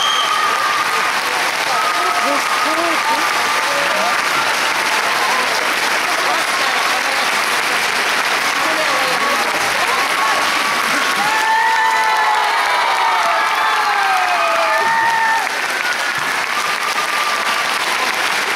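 A large audience applauds loudly and steadily in a big hall.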